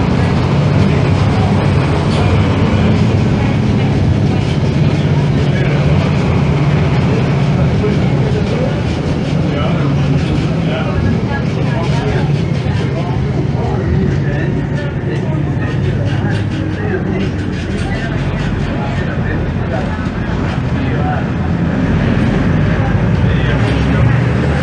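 A city bus's front-mounted six-cylinder diesel engine rumbles.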